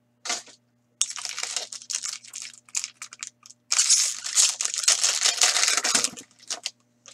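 Hands tear open a crinkling plastic wrapper.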